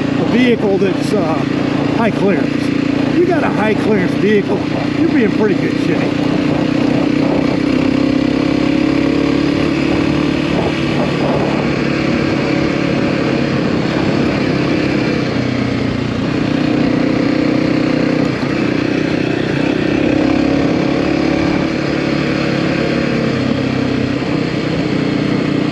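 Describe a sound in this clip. A motorcycle engine hums steadily up close, rising and falling in pitch.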